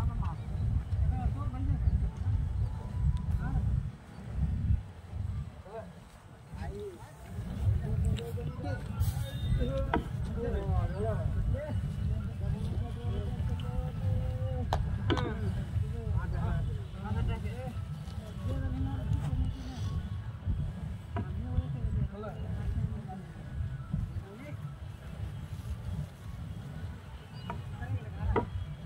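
Men call out to each other while straining.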